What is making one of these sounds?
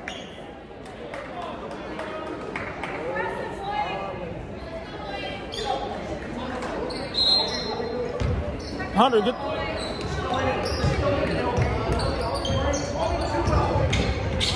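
Young women call out to each other across a large echoing hall.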